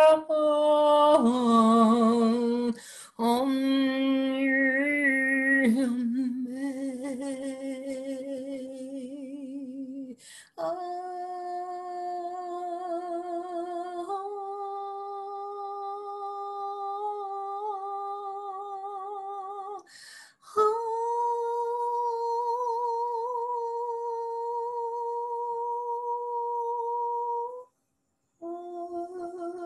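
A woman sings long, held notes with a gentle vibrato, close to the microphone.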